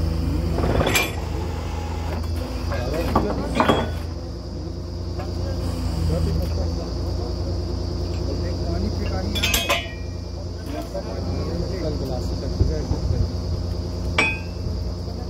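Metal clanks sharply now and then at the drill head.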